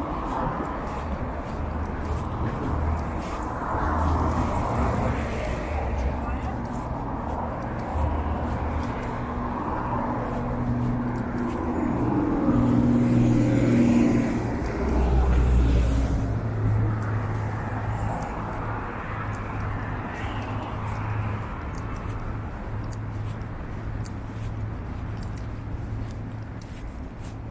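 Footsteps crunch on packed snow.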